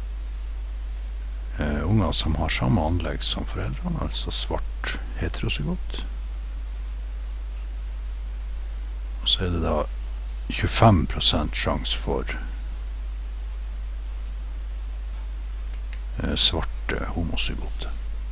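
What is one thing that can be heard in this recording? A felt pen squeaks and scratches on paper.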